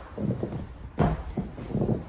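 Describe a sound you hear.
A chair knocks against the floor.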